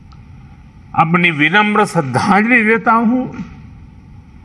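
An elderly man speaks slowly and solemnly through a microphone.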